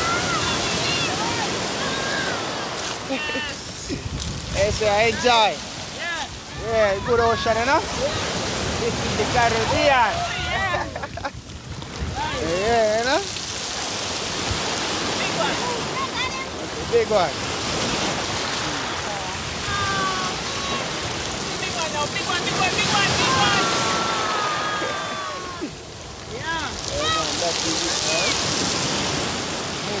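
Waves wash and break onto a pebbly shore.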